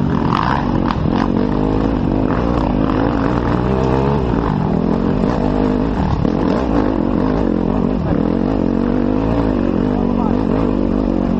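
Tyres crunch and rattle over loose stones.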